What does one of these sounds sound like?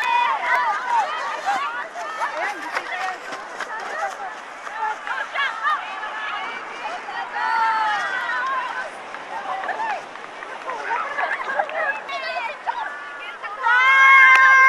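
Women laugh and shout with excitement nearby.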